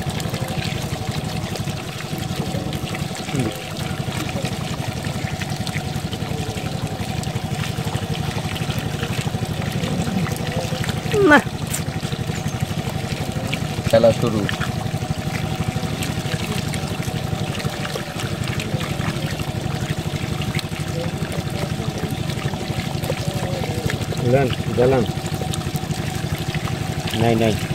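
Muddy water splashes and trickles steadily into a pool.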